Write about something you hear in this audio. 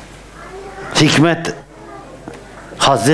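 An elderly man laughs aloud through a microphone.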